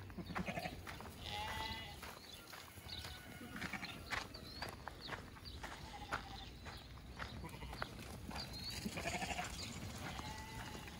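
Many hooves patter on dirt as sheep run.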